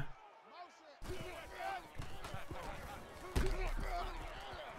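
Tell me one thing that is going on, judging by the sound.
A stadium crowd cheers in the background.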